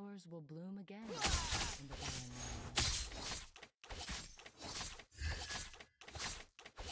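Game combat effects crash and whoosh in quick bursts.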